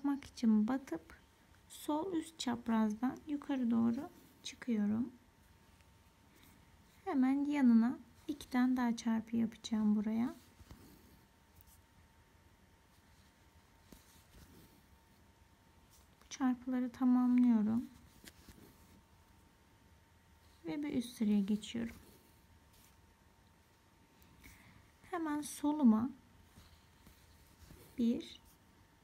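Thread rustles softly as a needle pulls it through coarse cloth.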